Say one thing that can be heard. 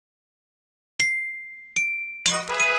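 Chimes ring out in quick bright notes.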